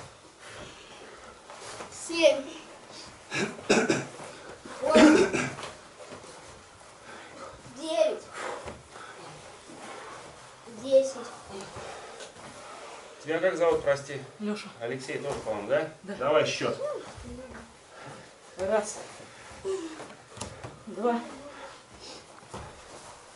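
Bodies shift and bump on foam mats.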